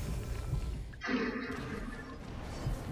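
A burst of flame whooshes up.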